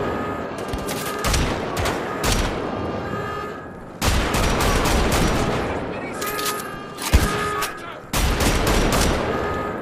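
A heavy machine gun fires in bursts.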